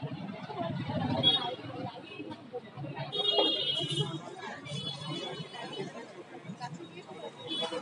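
A crowd of men and women chatters nearby in a busy street.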